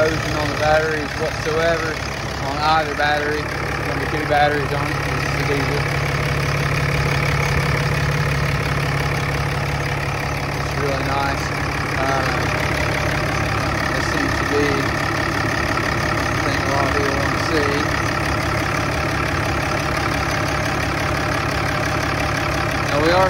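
A diesel engine idles with a steady low rumble.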